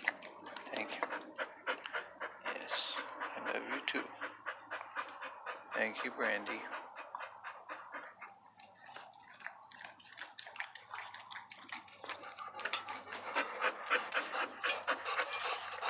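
A dog pants rapidly close by.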